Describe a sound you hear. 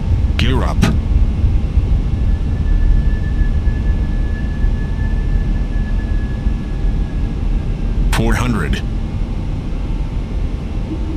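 Jet engines roar in a low, steady rumble.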